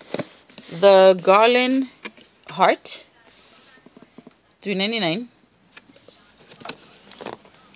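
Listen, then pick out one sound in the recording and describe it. A cardboard package rustles and taps as it is handled.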